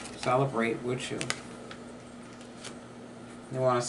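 A card is laid down on a wooden table.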